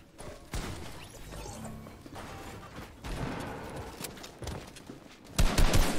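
Building pieces clatter into place in a video game.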